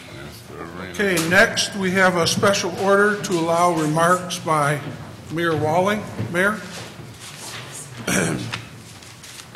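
A middle-aged man speaks calmly into a microphone through loudspeakers in an echoing hall.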